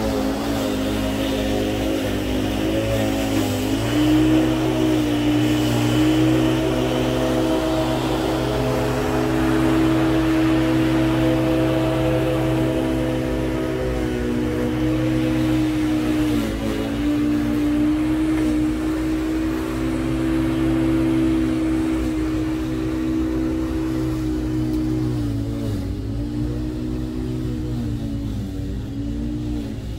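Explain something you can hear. An electric lawn mower hums steadily as it cuts grass, its pitch dipping now and then.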